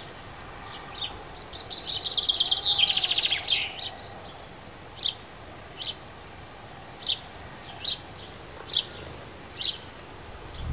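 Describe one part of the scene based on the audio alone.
A small bird sings a rapid trilling song, then repeats short sharp chirps.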